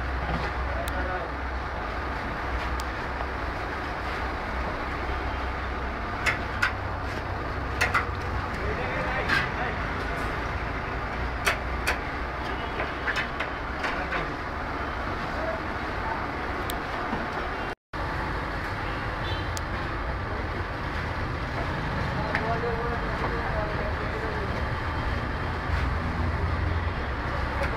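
A metal ladle scrapes and clinks against the pan.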